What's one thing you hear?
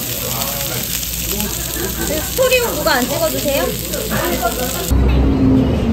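Pork sizzles loudly on a hot grill.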